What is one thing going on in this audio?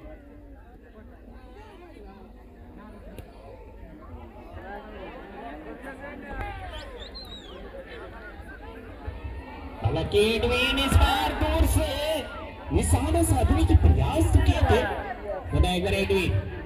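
A large crowd chatters outdoors, then roars and cheers loudly.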